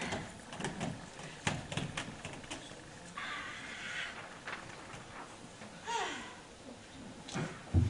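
A man speaks in a large echoing hall.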